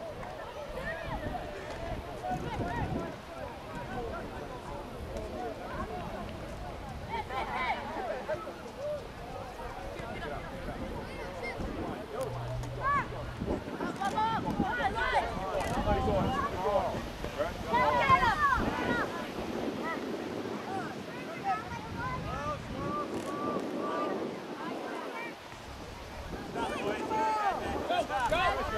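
Spectators on the sideline call out and cheer.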